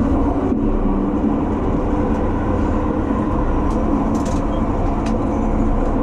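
A passing train rushes by close alongside.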